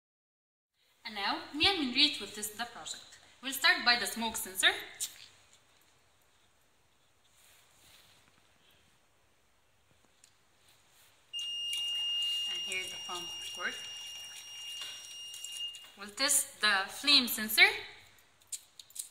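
A young woman speaks calmly close by.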